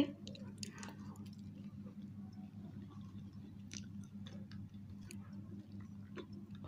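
Soft chewing and lip smacking sounds come up close.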